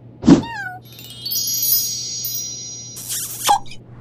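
Bright magical chimes twinkle and sparkle.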